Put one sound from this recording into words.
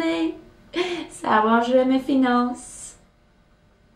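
A young woman speaks with animation, close by, with a laugh in her voice.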